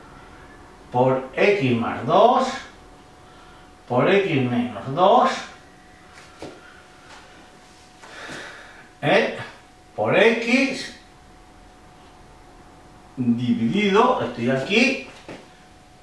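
An elderly man speaks calmly and clearly, explaining in short phrases with pauses.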